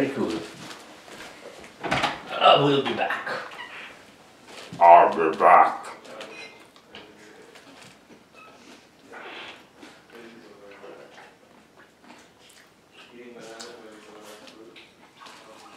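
A man chews food loudly up close, smacking his lips.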